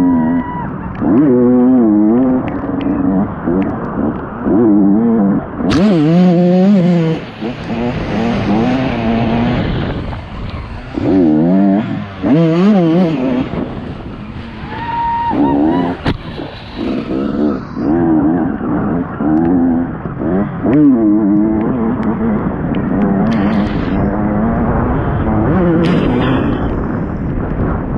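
A dirt bike engine revs hard and eases off.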